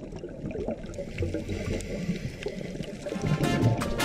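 Scuba bubbles gurgle and burble underwater.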